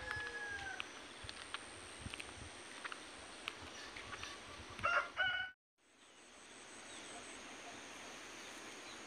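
Wind blows softly across an open field.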